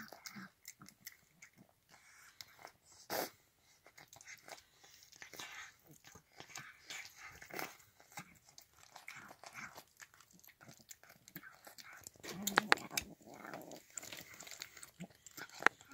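A cat eats wet food close by, chewing and smacking wetly.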